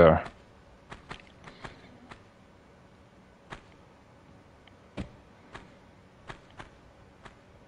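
Footsteps tap on stone in a cave.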